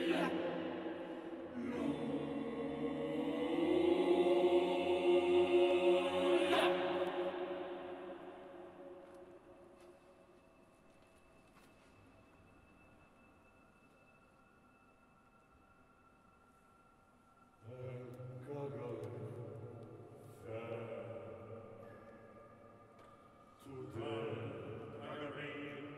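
A choir sings sustained chords in a large, echoing hall.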